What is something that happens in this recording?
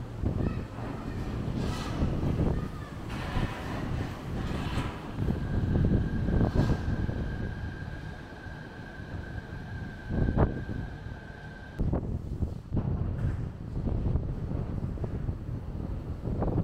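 A suspended monorail train whirs past overhead.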